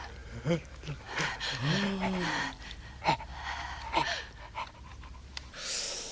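A man groans through clenched teeth.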